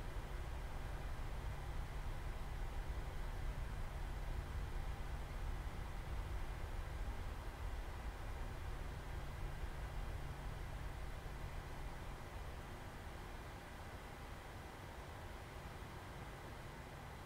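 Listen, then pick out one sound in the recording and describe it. Jet engines rumble steadily as an airliner taxis, growing a little quieter toward the end.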